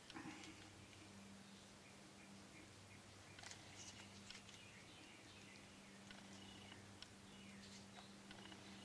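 A plastic spreader scrapes wetly across a glossy wooden surface.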